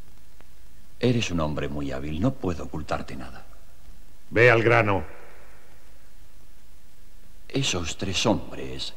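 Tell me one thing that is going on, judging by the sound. An elderly man speaks forcefully and close by.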